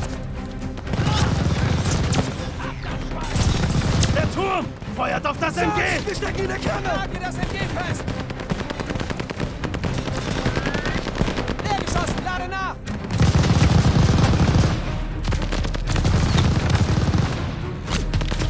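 Heavy gunfire rattles and booms in bursts.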